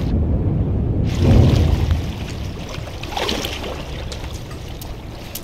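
Water splashes as a figure wades and swims.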